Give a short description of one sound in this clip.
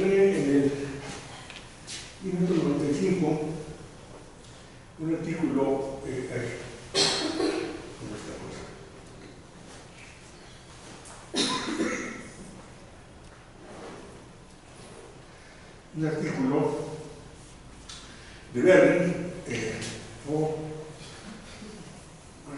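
An elderly man speaks calmly in bursts, in a room with a slight echo.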